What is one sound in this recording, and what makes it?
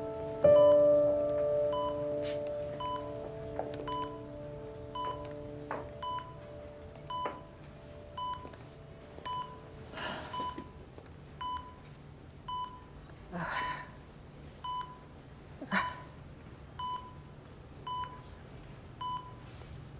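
A heart monitor beeps steadily at an even pace.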